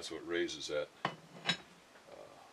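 Metal parts clink and tap as they are handled.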